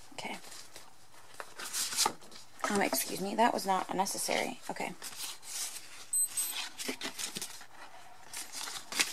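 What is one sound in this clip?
Plastic sleeves rustle and crinkle as cards are handled.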